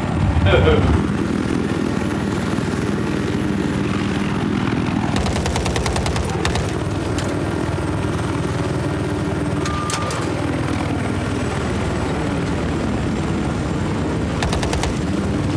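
A helicopter's engine whines steadily.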